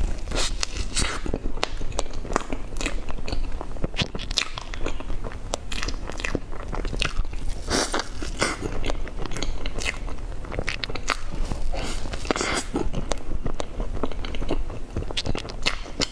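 A young woman smacks her lips and slurps cream.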